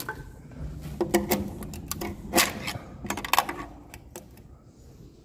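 A metal tool scrapes and knocks against a metal plate.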